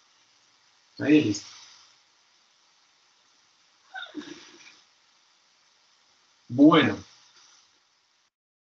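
A man speaks in short bursts over an online call.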